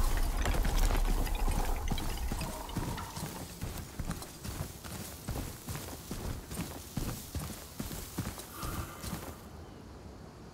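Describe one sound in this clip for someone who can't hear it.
Footsteps patter on grass and rock.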